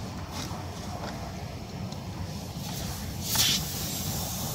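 A metal tool scrapes and pushes into a rubber tyre.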